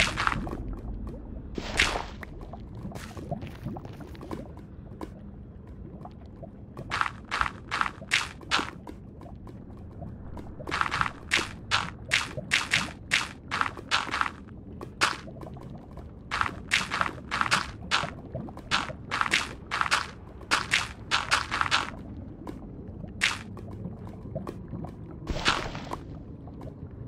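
Blocks are placed in a game with quick, crunchy taps.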